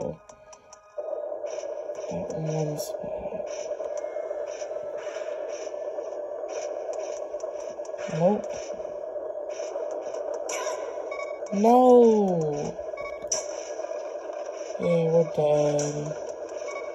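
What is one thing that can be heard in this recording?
Tinny game music plays through a small handheld speaker.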